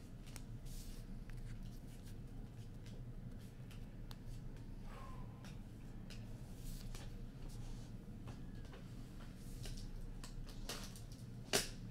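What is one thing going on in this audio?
Trading cards rustle and tap on a table.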